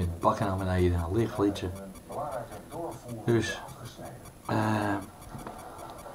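An elderly man talks calmly, close to the microphone.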